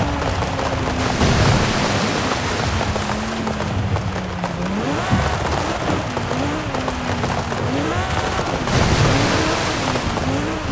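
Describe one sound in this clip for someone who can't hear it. Water splashes loudly under speeding tyres.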